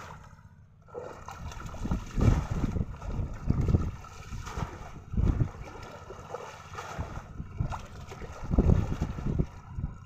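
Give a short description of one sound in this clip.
Water splashes as a net is hauled through it.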